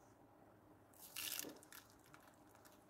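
Dried berries patter into a pot of simmering soup.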